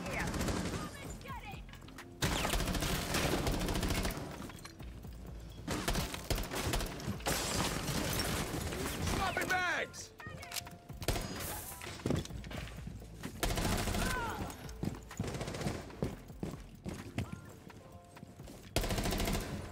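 Rapid gunfire rattles in short bursts.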